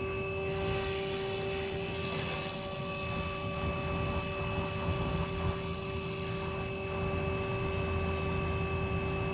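A model helicopter's motor whines steadily overhead.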